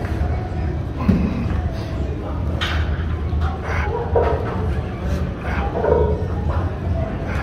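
A man calls out encouragement nearby in a large echoing room.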